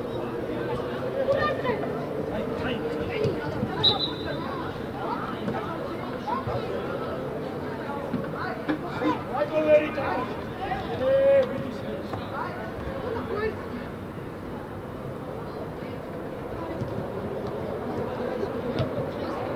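Young players shout to each other across an open outdoor pitch.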